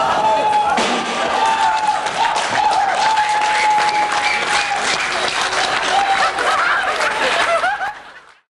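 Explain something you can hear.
Drums and cymbals crash and pound.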